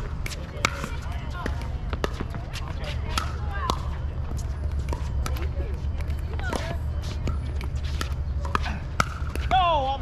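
Paddles smack a plastic ball back and forth with sharp pops.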